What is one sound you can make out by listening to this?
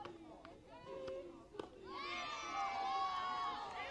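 A bat hits a softball with a sharp crack.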